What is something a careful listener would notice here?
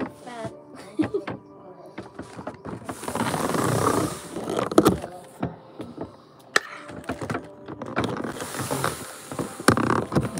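Things knock and rustle against a table close by.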